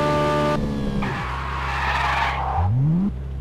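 Tyres screech as a car skids.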